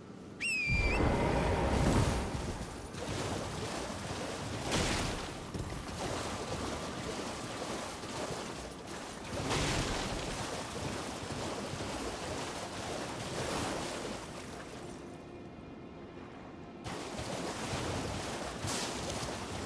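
A horse gallops with heavy hoofbeats.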